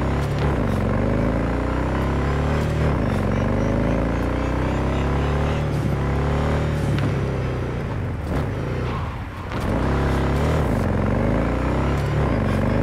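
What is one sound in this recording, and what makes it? A motorcycle engine roars and revs up through its gears, dropping in pitch at each shift.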